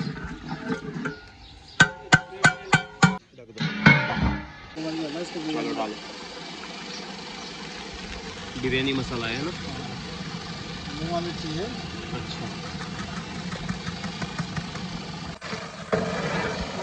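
A pot of liquid bubbles and boils.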